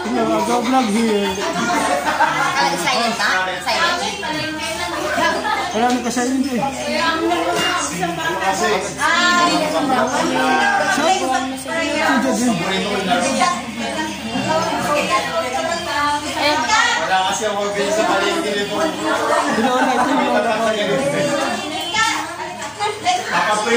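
Several women and men talk loudly over one another nearby.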